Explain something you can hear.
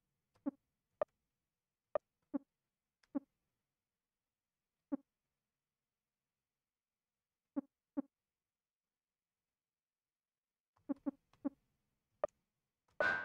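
Short electronic menu blips sound one after another.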